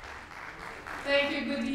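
A woman speaks through a microphone in a large hall.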